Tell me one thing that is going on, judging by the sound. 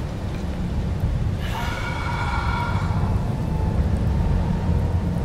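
Fire roars low and steady.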